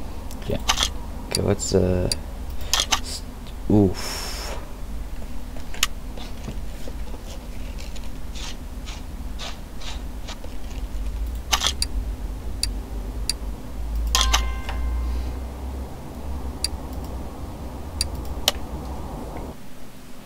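Menu clicks tick sharply now and then.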